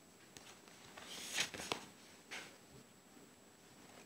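Paper rustles softly as a book is opened.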